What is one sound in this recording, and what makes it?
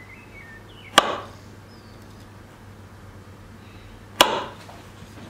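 A knife knocks sharply on a wooden board.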